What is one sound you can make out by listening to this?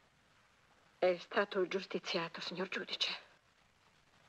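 A woman speaks with concern.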